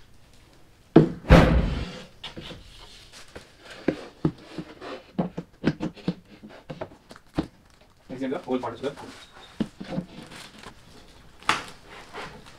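Wooden panels knock and thud against each other.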